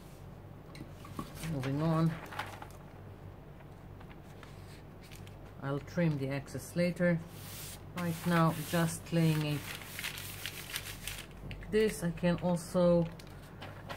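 A newspaper rustles and crinkles as it is handled.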